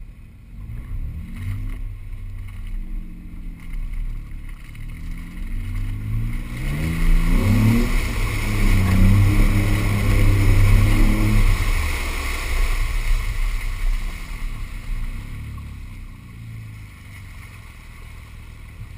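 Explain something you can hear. A vehicle engine hums and revs as it drives.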